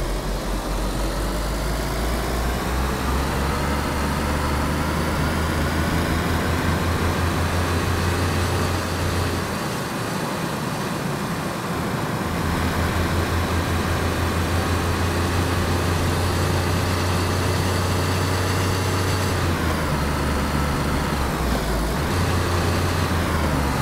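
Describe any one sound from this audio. A car engine drones steadily, dipping briefly between gear changes and then revving up again.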